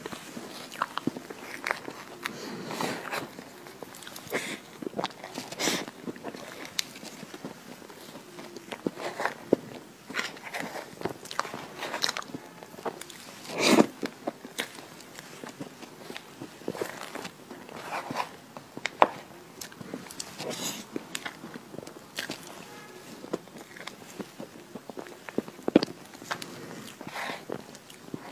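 A young woman chews and smacks soft chocolate cake with cream close to a microphone.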